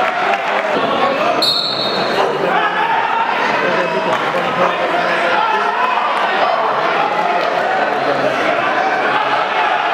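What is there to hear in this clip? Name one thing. A crowd talks and calls out loudly all around in a large echoing hall.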